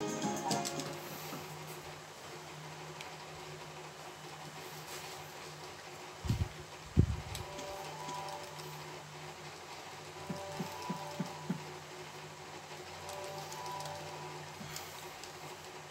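Soft video game music plays through a television speaker.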